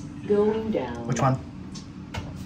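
An elevator button beeps.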